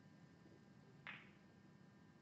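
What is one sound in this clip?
A snooker cue strikes the cue ball.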